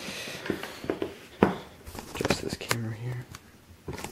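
A box is set down on a table with a soft knock.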